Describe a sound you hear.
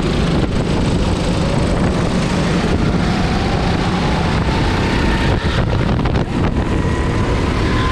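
A go-kart engine drones loudly up close, rising in pitch as it speeds up.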